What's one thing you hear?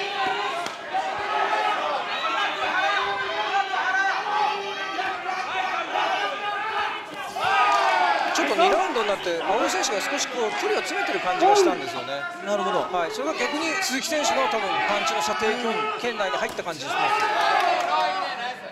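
A crowd shouts and cheers in a large hall.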